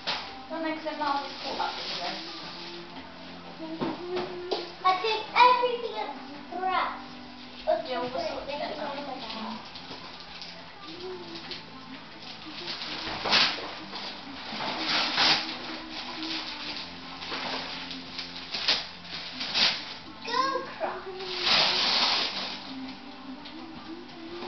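Wrapping paper rustles and tears as presents are unwrapped.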